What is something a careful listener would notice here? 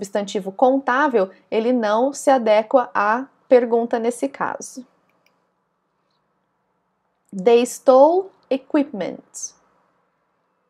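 A young woman speaks clearly and calmly into a close microphone.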